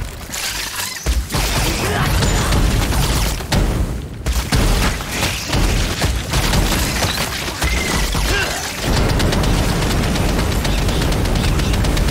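Magic blasts and explosions crash in rapid bursts.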